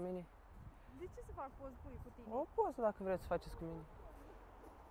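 A young woman answers nearby.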